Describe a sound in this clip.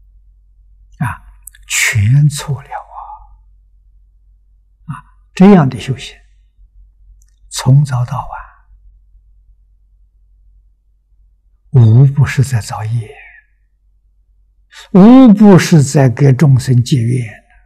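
An elderly man speaks calmly and deliberately into a close microphone, with long pauses.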